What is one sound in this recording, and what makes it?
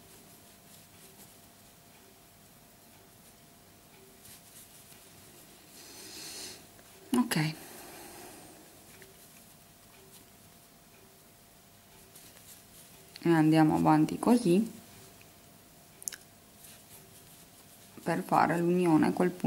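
A crochet hook softly rustles through yarn.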